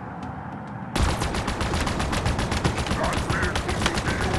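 Rapid gunfire crackles from the vehicle.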